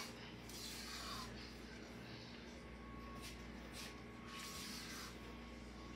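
A wooden spoon stirs and scrapes inside a pot.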